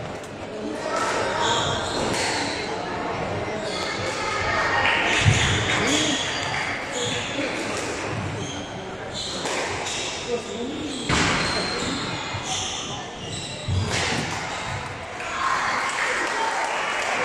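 A squash ball smacks against the court walls, echoing in a large hall.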